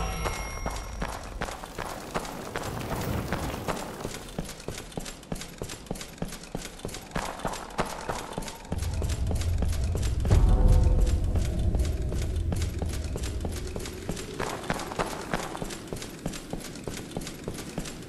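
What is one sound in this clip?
Heavy armored footsteps crunch steadily on snow and stone.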